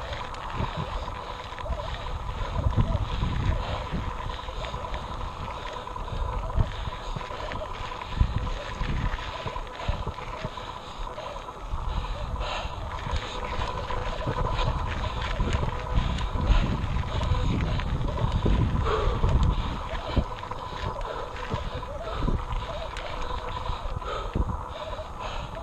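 Bicycle tyres roll and crunch over a dirt and rock trail.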